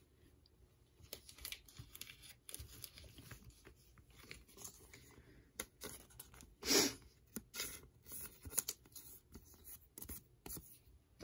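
Plastic card sleeves crinkle and rustle between fingers.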